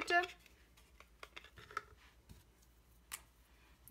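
A small plastic case is set down on a table.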